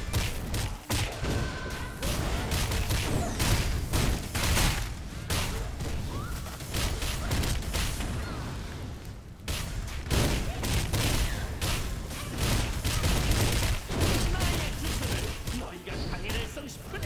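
Sword strikes and fiery blasts crash again and again in a fight.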